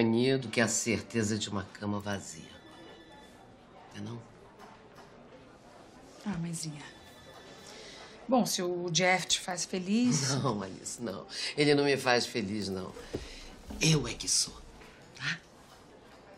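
An older woman speaks in a calm, close voice.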